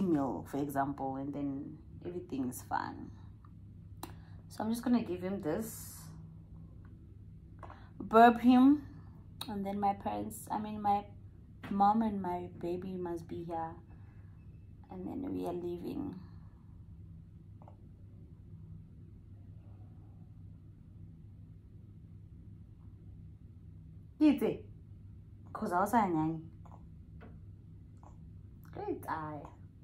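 A young woman talks calmly and softly, close by, with pauses.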